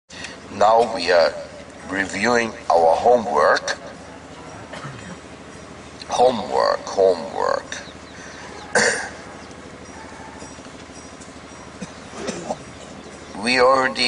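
A middle-aged man speaks calmly into a headset microphone, pausing often.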